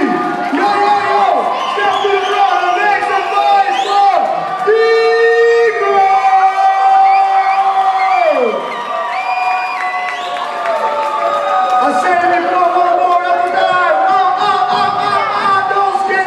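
Electronic music with sliding synth tones plays loudly through loudspeakers in a large hall.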